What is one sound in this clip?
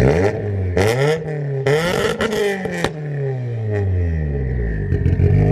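A car engine revs hard and loud through the exhaust, rising and falling in pitch.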